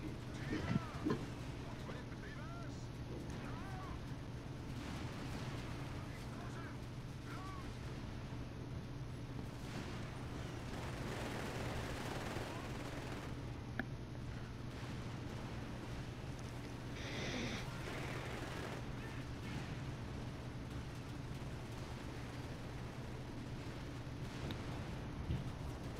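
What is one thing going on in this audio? Tank engines rumble steadily.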